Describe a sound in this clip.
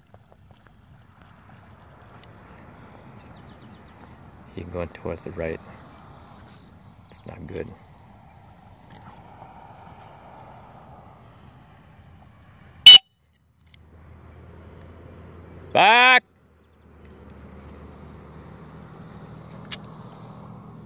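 A dog paddles softly through calm water.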